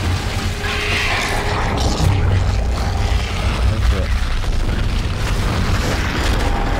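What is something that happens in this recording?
Creatures growl and snarl.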